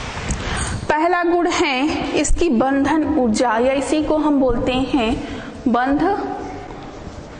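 A woman speaks clearly and steadily into a nearby microphone.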